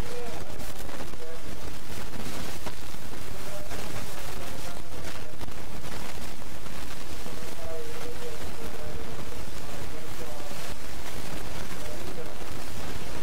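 A man speaks calmly through a microphone and loudspeakers.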